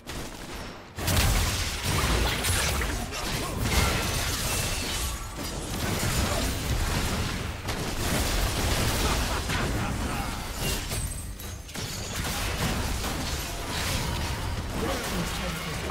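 Magic blasts and explosions crackle in a hectic fight.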